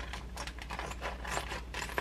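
Scissors snip through a plastic bag.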